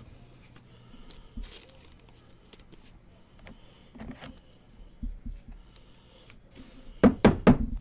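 Trading cards rustle and click as hands sort through them.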